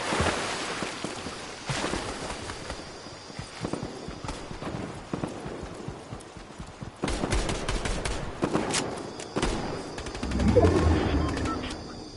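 Quick footsteps run over ground.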